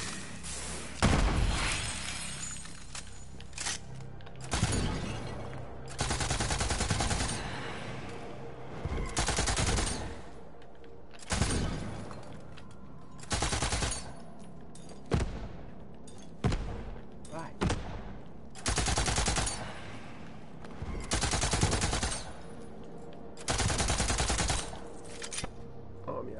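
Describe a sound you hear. A rapid-fire gun shoots in loud bursts.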